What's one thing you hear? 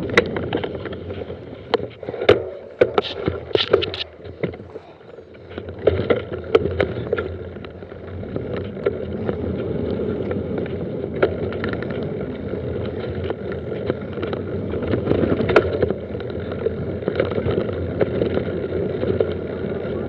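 A mountain bike rattles and clatters over bumps.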